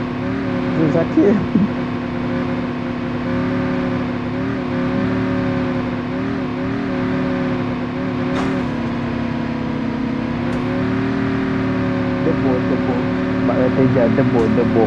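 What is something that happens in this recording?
A motorbike engine drones steadily, its pitch dipping and rising now and then.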